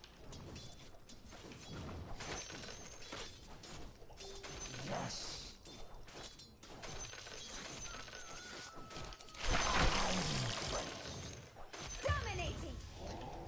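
Weapons clash and magic spells crackle in a fight.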